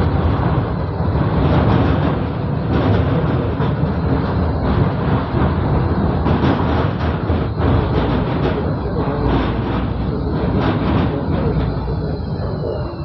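A tram rumbles and rattles along its rails.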